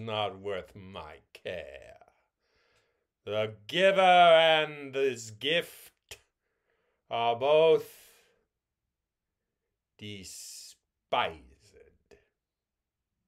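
A middle-aged man speaks expressively and close up, with pauses.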